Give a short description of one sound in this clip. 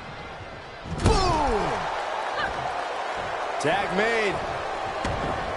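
Bodies thud on a wrestling ring mat.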